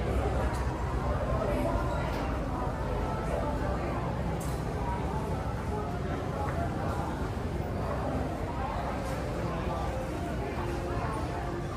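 Many people murmur and talk at once in the background of a large indoor hall.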